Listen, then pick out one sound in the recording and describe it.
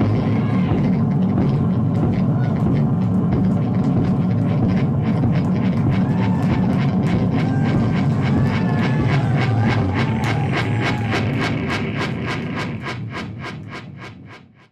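A rapid electronic pulse speeds up and fades out.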